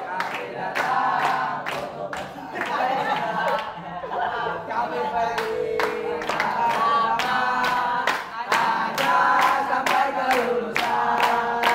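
A crowd of boys sings together.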